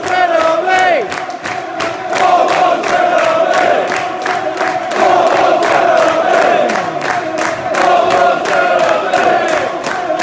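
A large stadium crowd sings loudly together, echoing under a roof.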